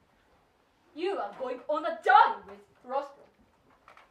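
Another young woman answers in short lines.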